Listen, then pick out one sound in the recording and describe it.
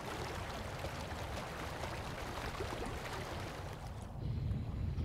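Water splashes and churns around a small boat.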